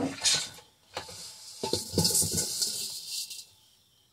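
Dry seeds rustle as a hand stirs them in a metal bowl.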